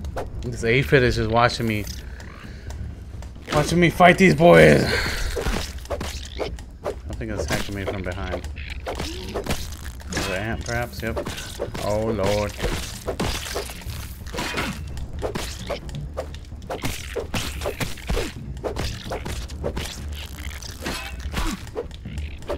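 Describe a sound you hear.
A blade swings and strikes insects with wet, squelching hits.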